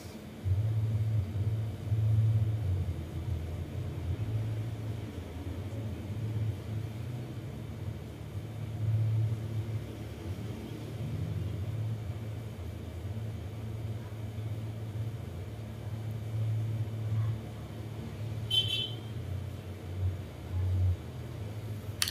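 A metal nail pick scrapes under a toenail.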